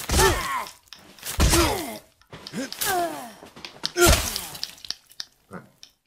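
A young woman screams and snarls wildly up close.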